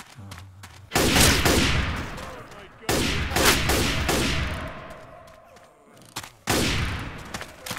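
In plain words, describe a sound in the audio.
A shotgun fires loud booming blasts that ring out and slowly fade.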